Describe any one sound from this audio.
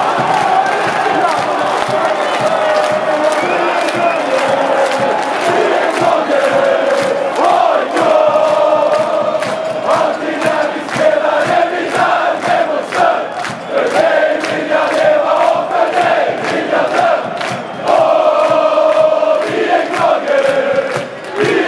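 A large crowd of men and women sings a chant together loudly in a big echoing stadium.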